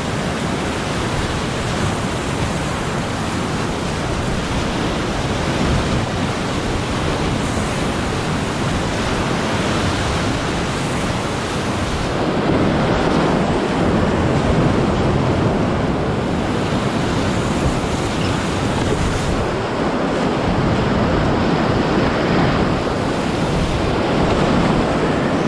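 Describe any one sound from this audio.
A kayak hull slaps and splashes through the waves.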